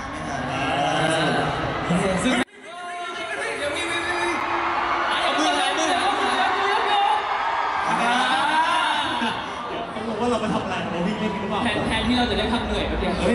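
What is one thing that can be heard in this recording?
A crowd screams and cheers loudly.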